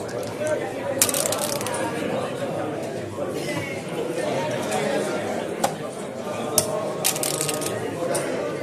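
Dice rattle in a cup and tumble onto the board.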